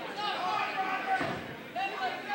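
A wrestler's blow lands with a sharp slap.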